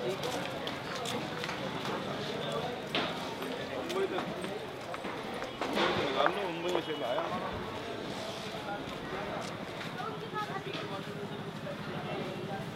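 Men and women chatter nearby in a busy street.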